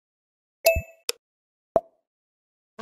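Short electronic menu blips sound.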